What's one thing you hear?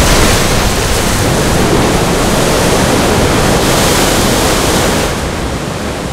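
Water surges and crashes loudly.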